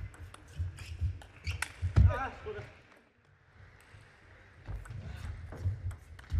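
Sneakers thump and shuffle on a hard floor.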